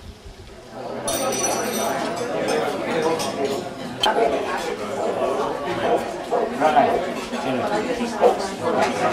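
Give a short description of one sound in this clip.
A crowd of older men and women chat all around.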